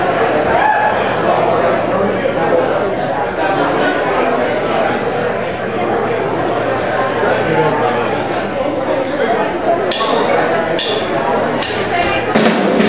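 An electric guitar plays loud chords.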